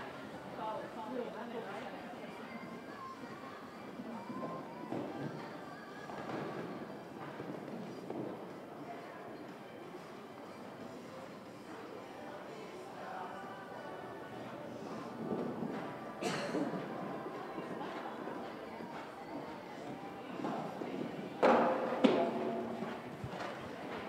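Horse hooves thud on soft sand in a large echoing hall.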